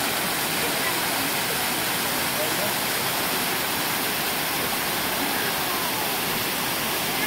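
A stream rushes and splashes steadily over rocks.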